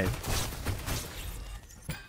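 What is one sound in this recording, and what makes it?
A magical blast whooshes and crackles in a game fight.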